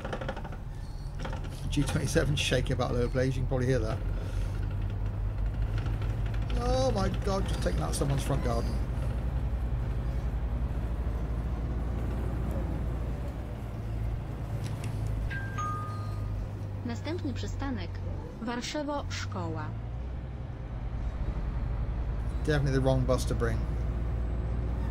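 A bus engine hums steadily at a low pitch.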